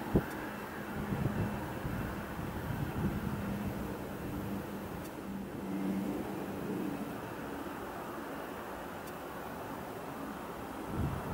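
A jet airliner's engines roar steadily from a distance.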